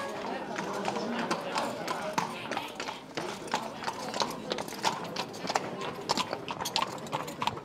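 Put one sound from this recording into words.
Horse hooves clop on stone pavement.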